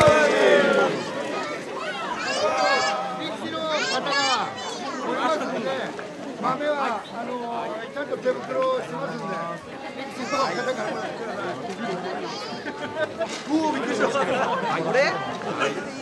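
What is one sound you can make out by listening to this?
A crowd of people talk and call out all around.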